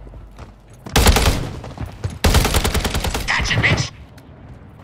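A rifle fires in loud rapid bursts close by.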